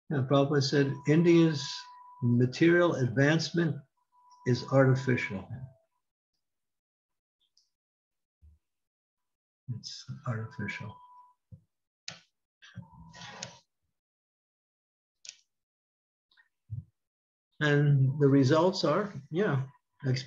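An elderly man speaks calmly over an online call, in pauses.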